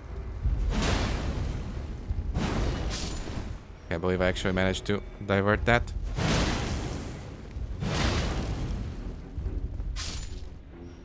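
Heavy blows land with loud crashing bursts.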